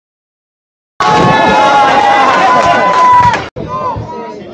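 A crowd of young people cheers and shouts loudly.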